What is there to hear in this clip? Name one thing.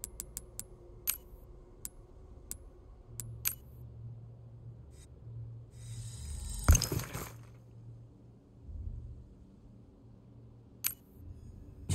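Soft menu clicks tick one after another.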